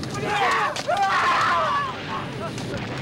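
A man screams in agony.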